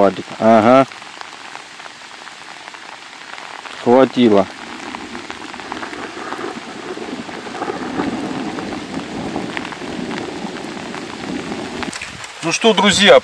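Rain patters steadily on open water outdoors.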